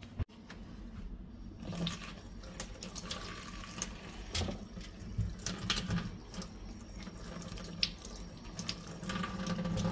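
Mushrooms knock softly on a metal sink.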